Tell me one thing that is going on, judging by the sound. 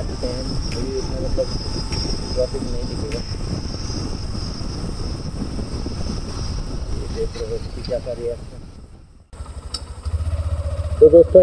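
Wind rumbles against the microphone while riding along a road.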